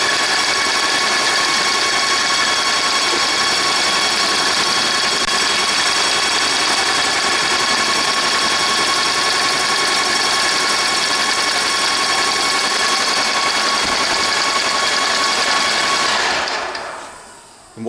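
A paint sprayer runs with a loud, steady hiss and whine, then stops.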